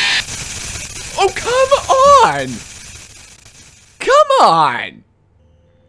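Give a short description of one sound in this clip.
A young man screams loudly.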